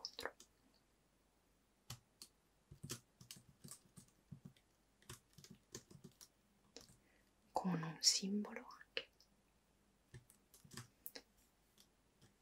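Keys click as someone types on a laptop keyboard.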